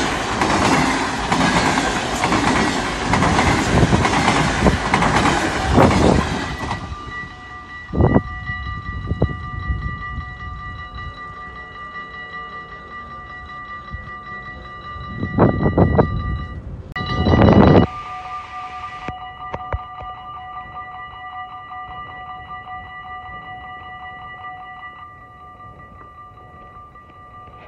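A level crossing bell rings steadily.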